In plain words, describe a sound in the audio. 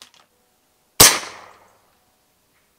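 A rifle fires a single suppressed shot.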